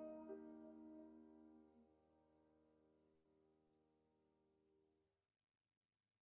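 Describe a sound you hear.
A soprano saxophone holds a long note that slowly fades away.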